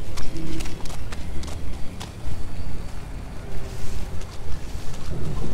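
Footsteps tread through leafy undergrowth.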